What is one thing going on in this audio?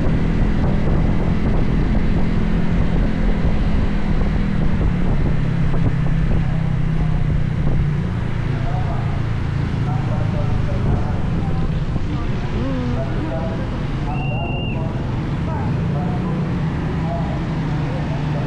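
Motorcycles and cars drive by on the street.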